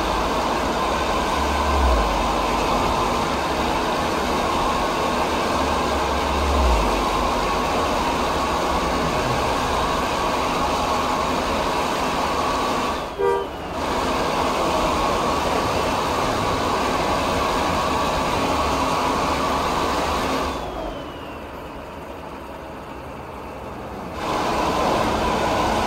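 A bus engine drones steadily as it drives along a road.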